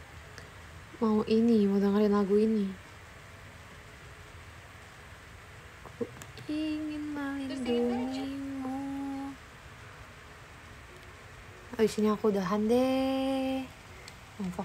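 A young woman sings short, drawn-out phrases close by.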